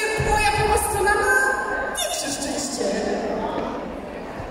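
A woman speaks through loudspeakers in a large echoing hall.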